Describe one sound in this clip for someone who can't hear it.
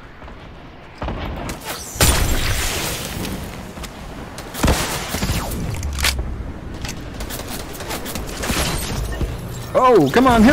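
Gunfire and explosions boom loudly.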